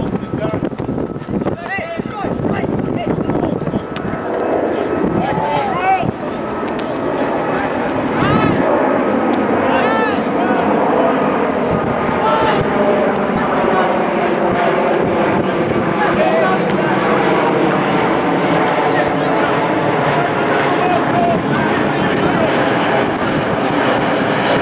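Young men shout to one another from across an open playing field.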